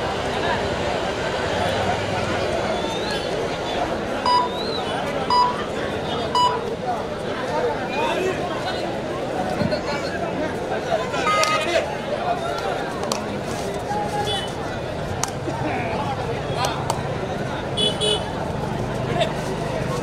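A large crowd cheers and chatters loudly throughout.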